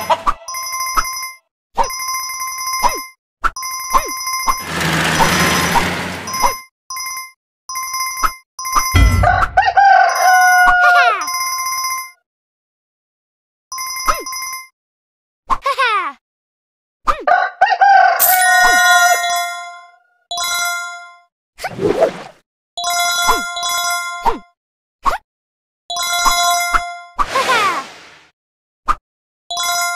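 Bright chimes ring quickly, over and over, as coins are picked up.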